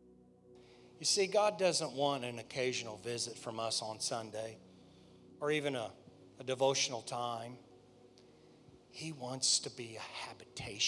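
A man speaks calmly into a microphone, heard through loudspeakers in a large hall.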